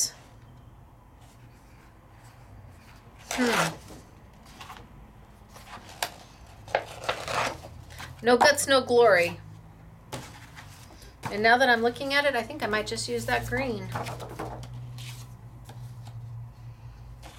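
Sheets of card rustle and slide against each other.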